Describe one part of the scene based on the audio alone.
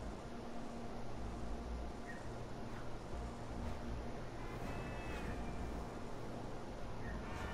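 A motorbike engine hums steadily as it rides along.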